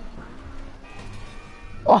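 A motorcycle engine revs.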